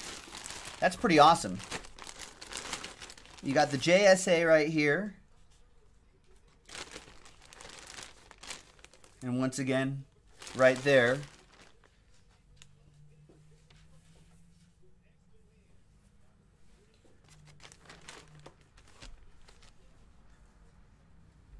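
A plastic bag crinkles and rustles as it is handled.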